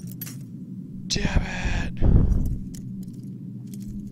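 A lock pick snaps.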